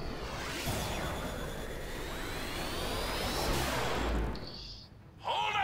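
Magical spell effects swirl and shimmer with rising whooshes.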